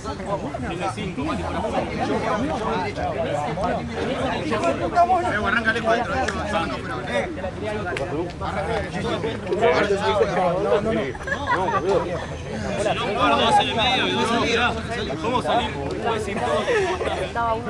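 Several young men talk and shout over one another outdoors.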